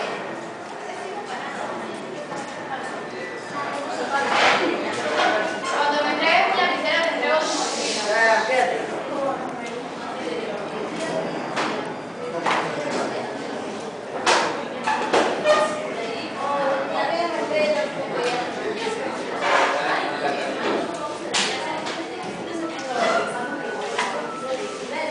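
Cardboard blocks knock and tap lightly against each other on a table.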